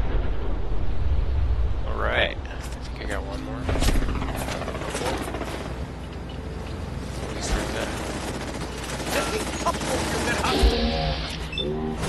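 Gunfire bursts in quick shots.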